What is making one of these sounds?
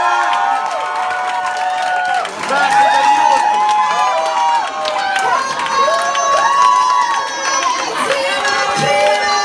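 A crowd of young women screams and cheers excitedly close by.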